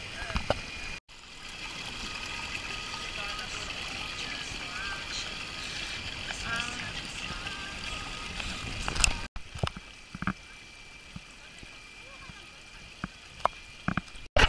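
A small stream trickles and splashes over rocks.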